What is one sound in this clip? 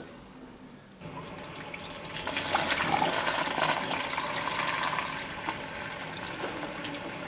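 A small motor spins a drum with a steady whir.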